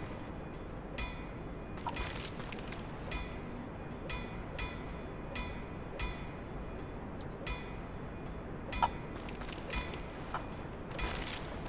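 Armored footsteps clink and crunch at a slow, steady pace.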